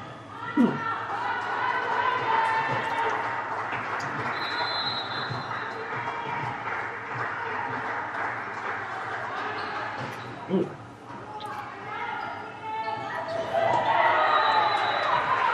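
A volleyball thumps sharply as players hit it.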